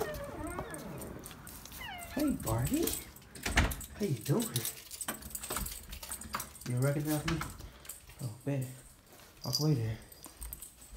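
A kitten mews in short, high cries.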